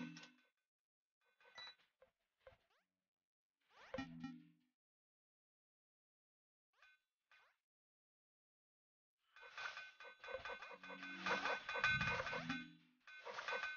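Short electronic game chimes ring out now and then.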